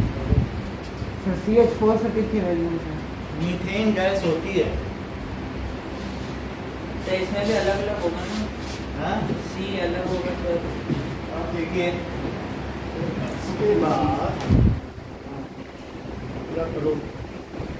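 A man lectures calmly, close by.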